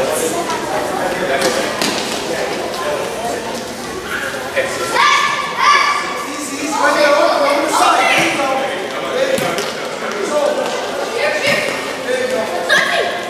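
A ball thumps as it is kicked across a hard floor.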